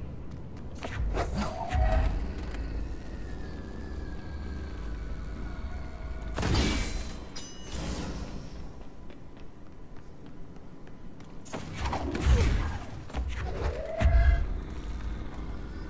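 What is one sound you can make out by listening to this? Heavy objects crash and slam into walls.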